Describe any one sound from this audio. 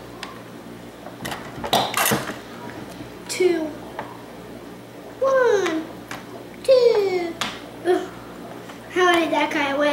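Plastic game pieces click on a wooden board.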